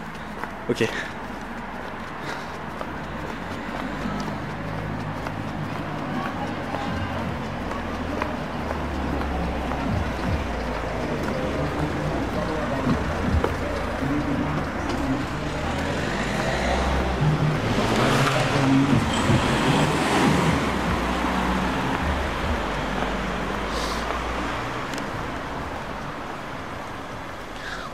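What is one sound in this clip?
Footsteps tap on a paved pavement outdoors.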